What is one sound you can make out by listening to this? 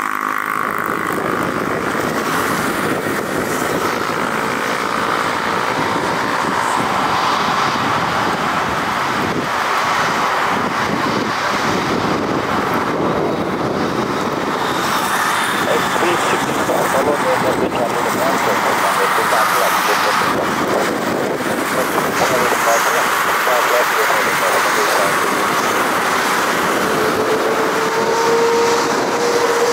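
Aircraft tyres roll on a wet runway.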